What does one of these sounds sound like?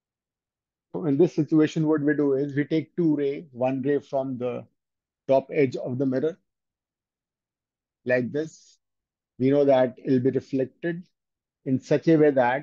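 A man speaks calmly and clearly, as if explaining a lesson, close to a microphone.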